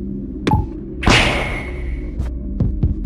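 A game's blocks shatter with a crunching burst that slowly fades.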